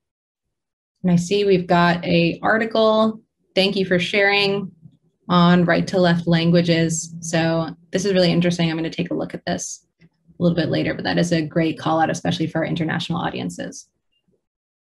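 A young woman speaks calmly into a close microphone.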